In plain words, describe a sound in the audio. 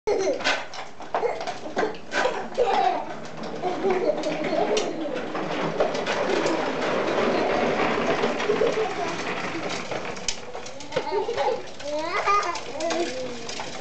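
Young children shout and babble excitedly nearby.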